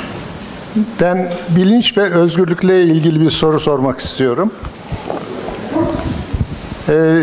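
A second man speaks with animation into a microphone.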